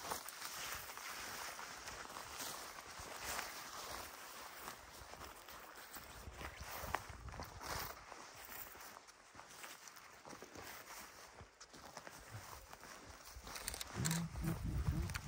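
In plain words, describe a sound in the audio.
Wind blows steadily across an open hillside.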